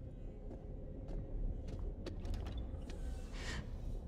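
Footsteps thud slowly on a wooden floor.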